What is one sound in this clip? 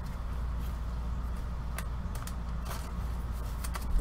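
Plastic wrapping crinkles as a pack is torn open.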